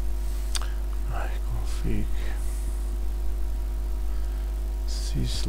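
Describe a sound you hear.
A man speaks briefly and quietly into a headset microphone.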